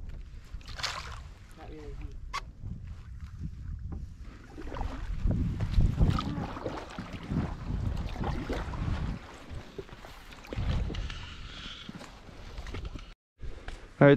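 A paddle dips and splashes in calm water.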